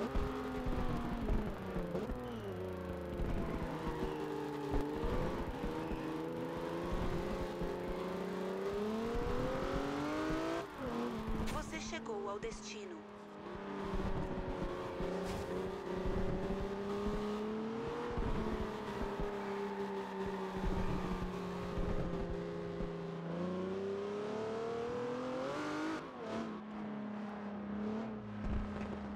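A sports car engine revs high and shifts gears.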